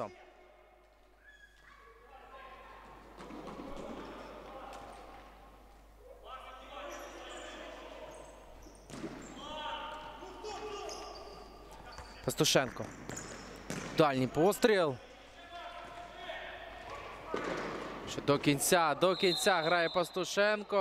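Players' shoes squeak on a wooden floor in a large echoing hall.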